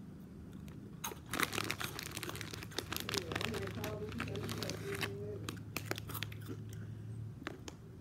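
Plastic crinkles and rattles in a girl's hands.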